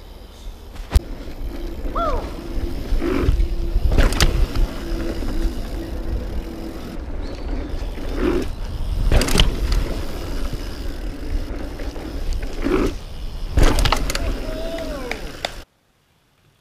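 A bicycle rattles and clunks over bumps.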